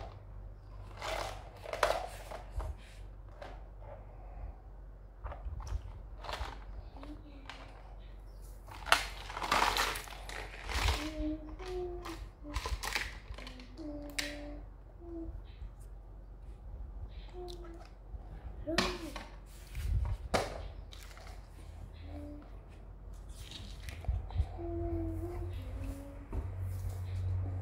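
Plastic toys click and clatter as they are handled.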